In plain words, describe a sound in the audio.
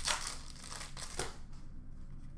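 Plastic card sleeves rustle and slide in a hand.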